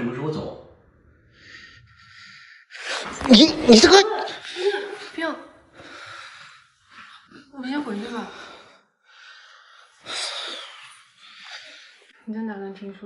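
A young man speaks in a dazed, mumbling voice close by.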